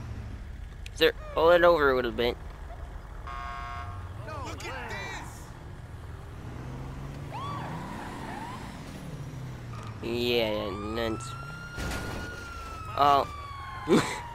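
A police siren wails in short bursts.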